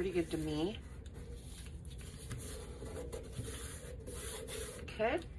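Paper rustles and crinkles softly.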